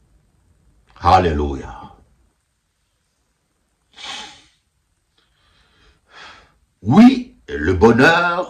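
A middle-aged man speaks close to a microphone in short, emotional bursts, with pauses between them.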